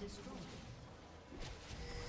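An explosion bursts with a boom.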